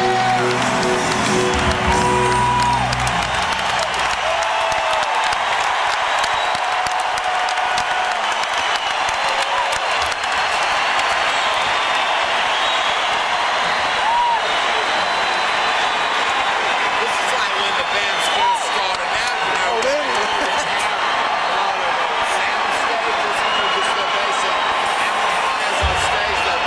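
A large crowd cheers and whistles loudly in a big echoing arena.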